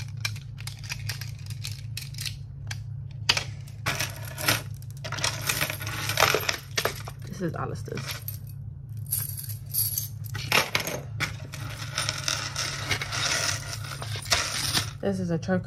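Metal chains and beads clink and rattle as hands handle them.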